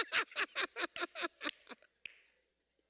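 A man claps his hands quickly.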